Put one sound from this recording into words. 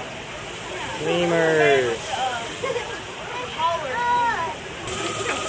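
Lemurs call out with short, rising and falling cries.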